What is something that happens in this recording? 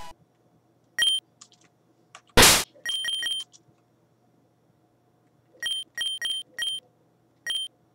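Video game menu beeps blip in quick succession.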